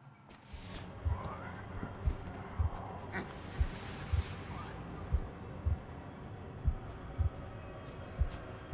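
Heavy footsteps thud steadily on metal stairs.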